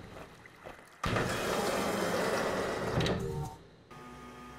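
An elevator rumbles as it moves and stops with a clank.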